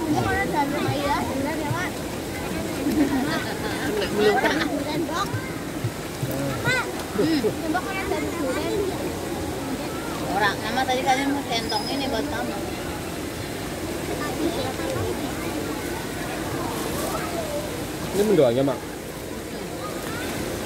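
A girl talks close by.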